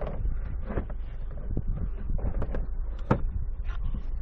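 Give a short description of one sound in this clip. A hand taps and rustles on a carpeted panel.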